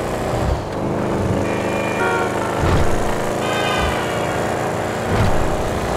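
A car engine revs loudly and steadily as the car speeds along.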